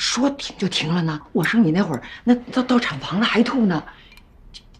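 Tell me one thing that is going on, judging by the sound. A middle-aged woman speaks with animation.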